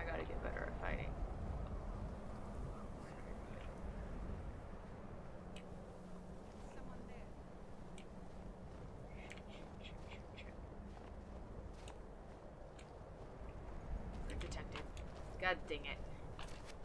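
A young woman talks casually into a close microphone.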